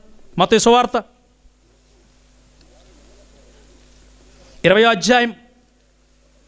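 A man recites loudly and with feeling into a microphone, in short bursts.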